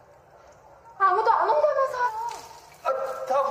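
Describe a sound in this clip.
A young woman shouts in alarm.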